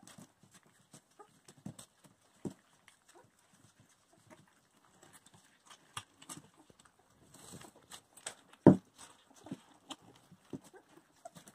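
Puppies lap and chew food from bowls.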